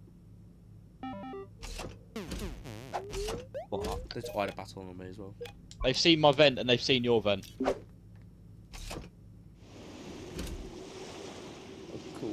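Short electronic game sounds chime and blip.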